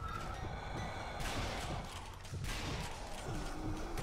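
A sniper rifle fires a sharp shot.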